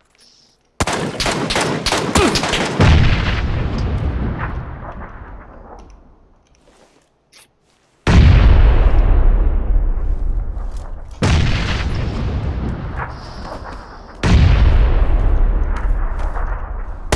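Thunder cracks loudly and rolls away in long low rumbles.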